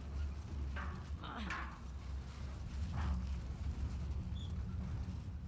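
A heavy metal bin rumbles and scrapes as it is pushed along the ground.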